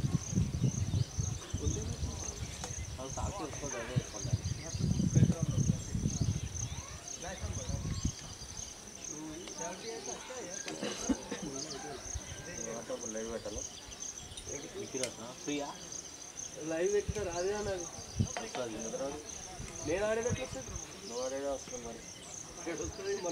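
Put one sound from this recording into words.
Men talk and call out at a distance outdoors.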